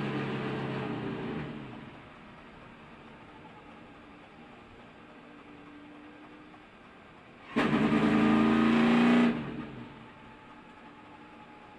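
A race car engine roars loudly inside the cockpit, rising and falling in strength.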